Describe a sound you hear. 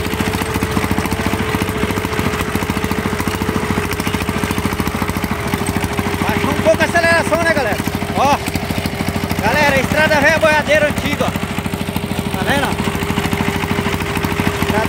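A small single-cylinder engine chugs steadily and loudly close by.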